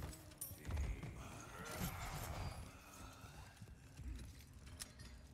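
Footsteps thud on wooden stairs.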